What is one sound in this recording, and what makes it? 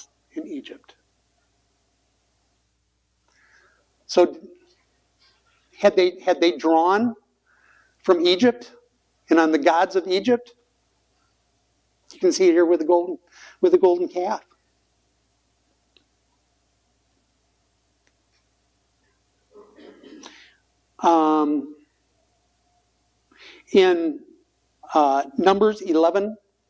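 An older man speaks calmly and clearly into a microphone, pausing between phrases.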